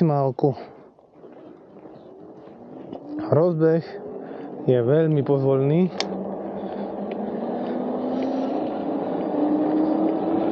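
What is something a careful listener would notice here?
Tyres hum on asphalt.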